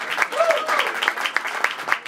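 A man claps his hands.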